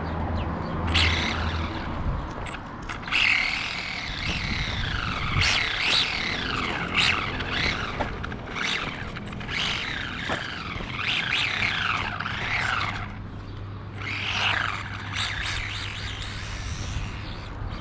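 Small tyres rumble on rough asphalt.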